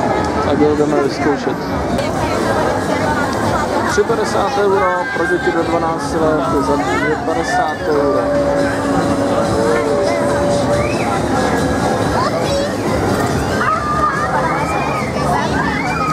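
A crowd of people chatter nearby, outdoors.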